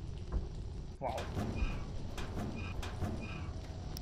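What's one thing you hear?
A metal locker door creaks open.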